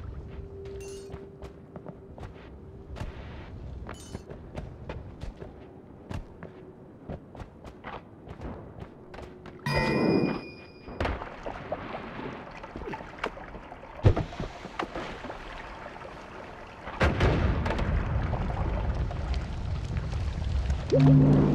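Game spells zap and burst with sharp crackles.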